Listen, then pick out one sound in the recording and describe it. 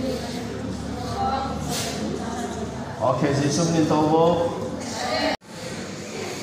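A man speaks into a microphone over a loudspeaker in an echoing hall.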